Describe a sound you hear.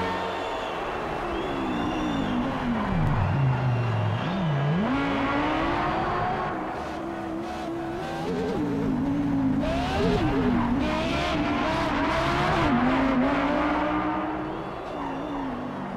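A race car engine roars loudly, its pitch rising and falling as it shifts gears.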